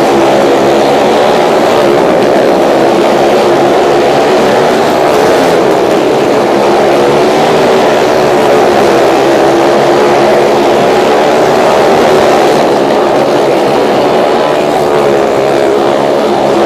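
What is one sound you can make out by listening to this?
Motorcycle engines roar loudly and steadily, echoing off the walls.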